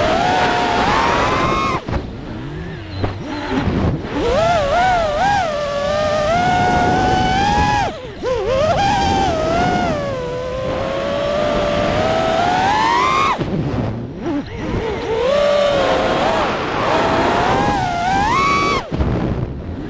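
A small drone's motors whine close by, rising and falling in pitch as it speeds up and slows down.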